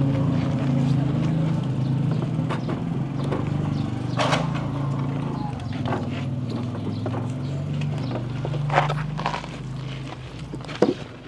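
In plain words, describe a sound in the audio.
A motorbike engine idles steadily.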